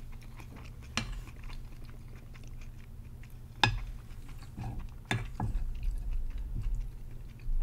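A spoon scrapes and clinks against a plate.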